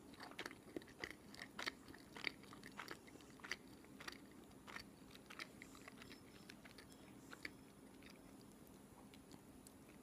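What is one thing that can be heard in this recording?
A young woman chews food with moist, crackly mouth sounds close to the microphone.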